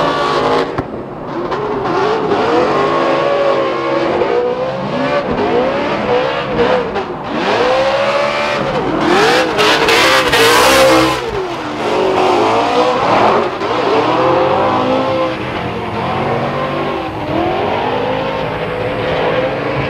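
Tyres screech as cars slide around a track.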